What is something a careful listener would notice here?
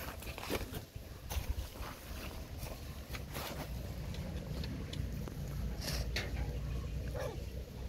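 Dry leaves rustle and crackle underfoot.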